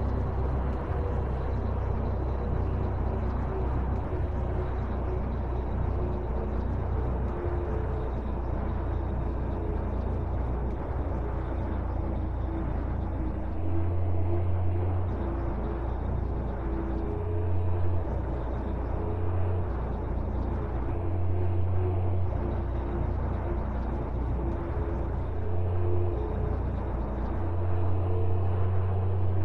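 A truck engine drones steadily at speed.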